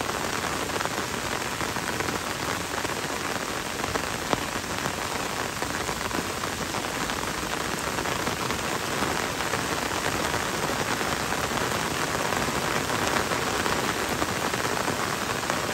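Rain falls on leaves and a wet road.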